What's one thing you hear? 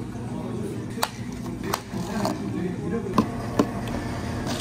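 Plastic cups knock on a counter.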